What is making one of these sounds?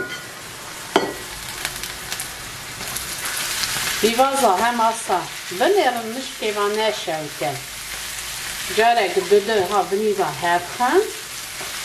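Food sizzles in a frying pan.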